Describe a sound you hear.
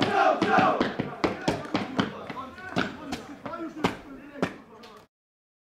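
Several people clap their hands in quick bursts.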